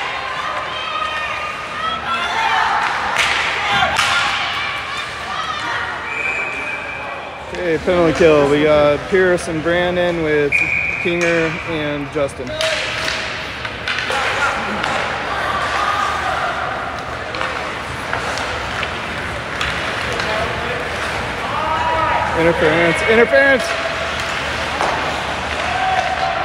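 A crowd of spectators talks and calls out in a large echoing rink.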